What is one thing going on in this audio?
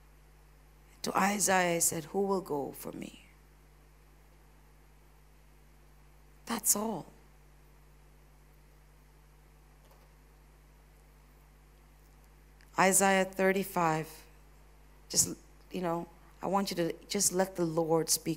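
A woman speaks slowly and with feeling through a microphone, with long pauses.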